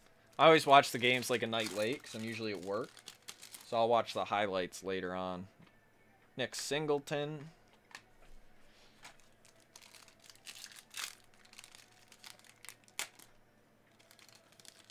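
Card packs crinkle and rustle in hands.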